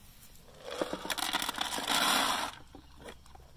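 Feed pellets rattle as they are scooped into a metal bucket.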